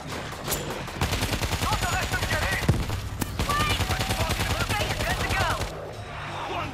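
Gunfire rattles in rapid bursts nearby.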